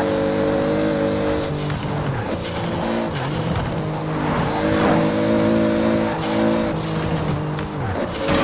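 A racing car engine roars at high revs, dropping in pitch with each gear change.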